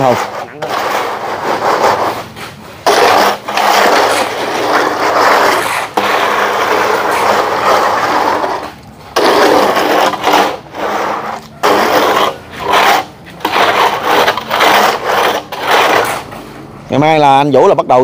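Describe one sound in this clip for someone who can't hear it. A metal straightedge scrapes and drags across wet concrete.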